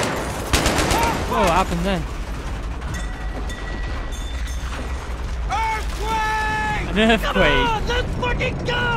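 A man talks excitedly into a headset microphone.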